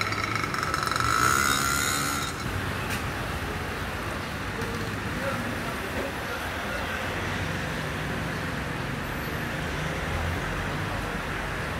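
A car drives slowly past close by.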